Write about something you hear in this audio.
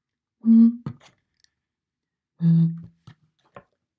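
A bottle gives a low hooting tone as air is blown across its mouth.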